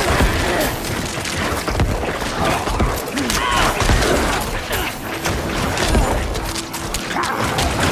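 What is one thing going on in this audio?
Spells and weapons crash and burst in rapid, chaotic bursts.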